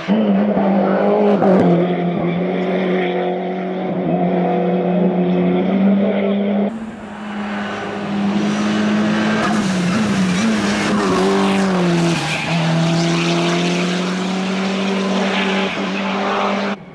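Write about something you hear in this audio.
A racing car engine roars loudly as the car speeds past and shifts gears.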